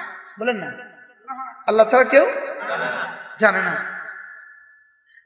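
An elderly man preaches loudly and with fervour into a microphone, heard through a loudspeaker with echo.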